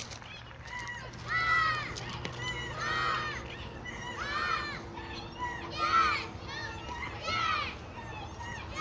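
Children shout in the distance outdoors.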